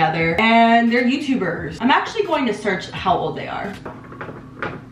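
A young woman talks animatedly close by.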